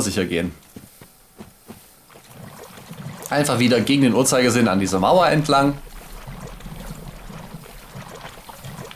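Footsteps splash through shallow water.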